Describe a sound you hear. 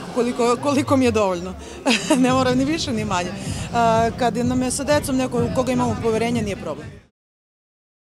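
A young woman speaks cheerfully into a microphone, close by.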